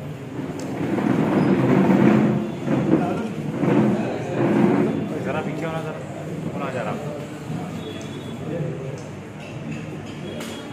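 A crowd of men and women chatter and call out in an echoing room.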